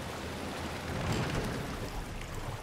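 A wooden boat bumps against a dock.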